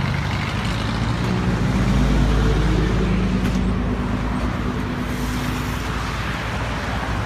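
A truck engine rumbles low as it passes close by.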